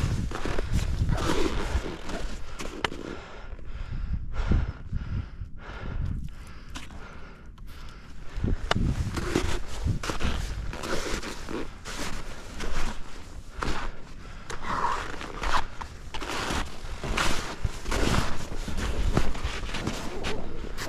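Skis scrape and hiss over crusty snow.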